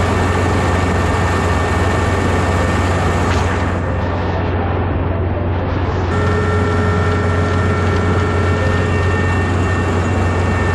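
Rice stalks rustle and crunch as the harvester cuts them.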